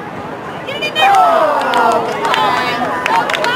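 A group of young women cheer and scream loudly.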